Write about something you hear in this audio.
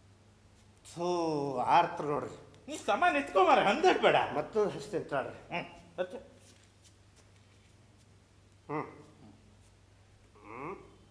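A young man speaks loudly and with animation.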